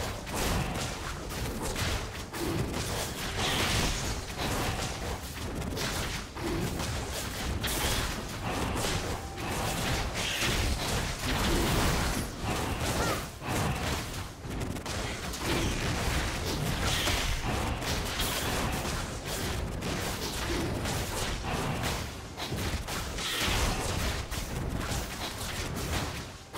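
Game combat effects of spells and blows clash repeatedly.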